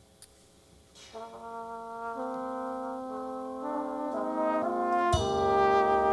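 A jazz band with horns starts playing sustained chords in a large hall.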